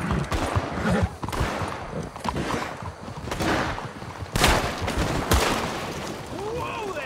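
A horse's hooves clop on a road.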